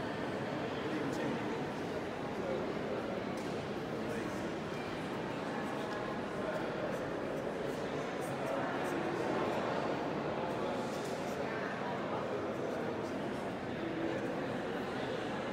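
Many people chatter quietly in a large echoing hall.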